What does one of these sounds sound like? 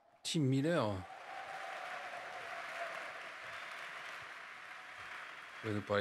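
A large crowd cheers and applauds in a big hall.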